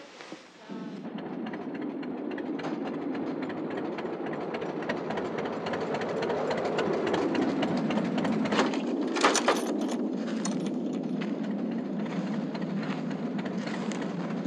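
An old truck engine rumbles as the truck drives past outdoors.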